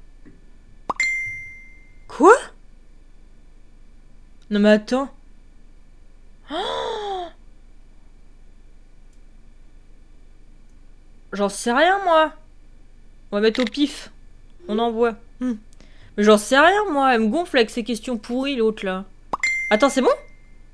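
Short chime notifications sound from a phone.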